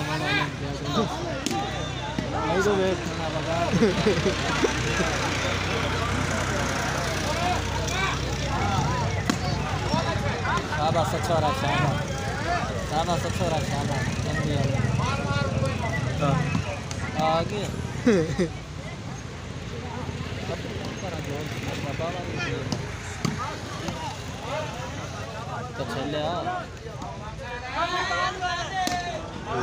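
A ball thumps when struck by hand.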